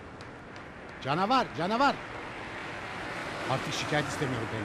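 An elderly man talks with animation nearby.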